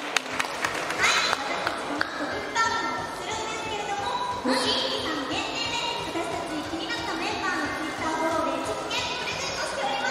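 Young women speak with animation through microphones.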